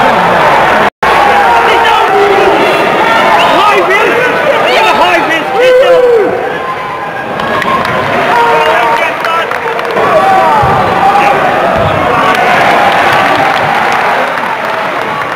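Men in the crowd nearby shout and cheer.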